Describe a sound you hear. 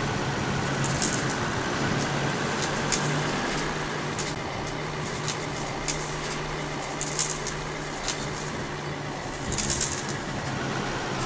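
Branches and brush scrape and snap against a truck.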